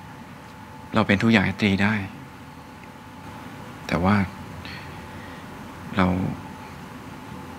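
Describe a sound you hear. A young man speaks quietly up close.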